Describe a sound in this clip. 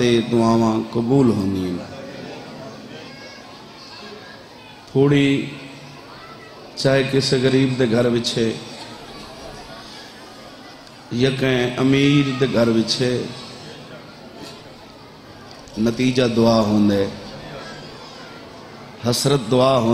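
A man chants loudly into a microphone in bursts, with echo from loudspeakers.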